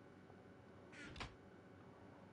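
A wooden chest thuds shut.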